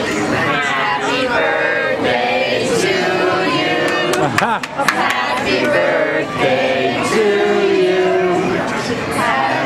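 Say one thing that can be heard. A group of adults and children sing together nearby.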